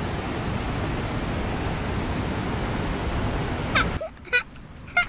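A river rushes over rocks in shallow rapids.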